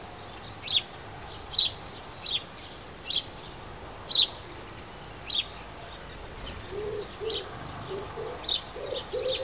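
Small birds twitter softly in quick runs.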